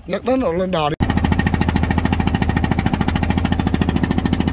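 A boat engine chugs steadily.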